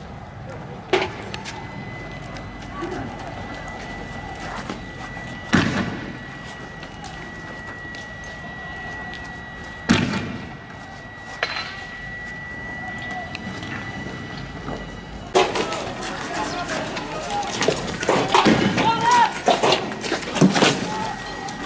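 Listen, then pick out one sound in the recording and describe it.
Tear gas launchers fire with sharp, echoing bangs.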